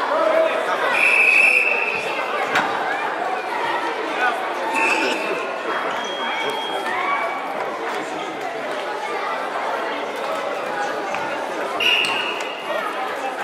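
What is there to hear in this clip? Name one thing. A referee blows short whistle blasts.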